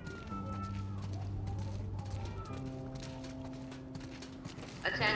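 Footsteps walk slowly on pavement.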